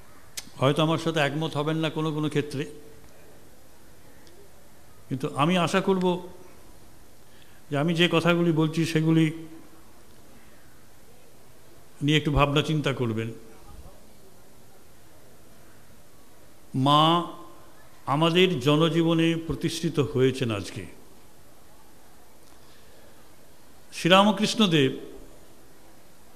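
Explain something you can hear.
An older man speaks slowly and deliberately into a microphone, in short phrases with long pauses.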